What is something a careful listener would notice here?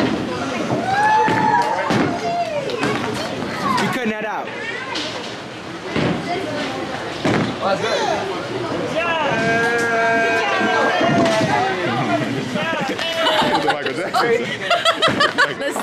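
Pins crash as a bowling ball strikes them.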